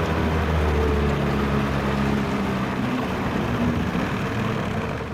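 Water rushes along the hull of a moving boat.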